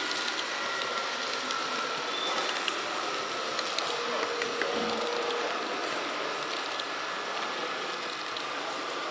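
A model train rolls along its track with a steady whirring hum.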